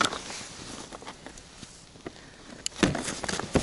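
A plastic case knocks and rattles as it is handled.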